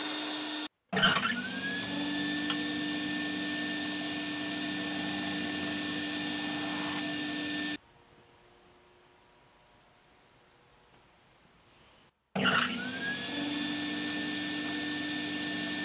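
A woodworking machine motor starts up and runs with a steady whine.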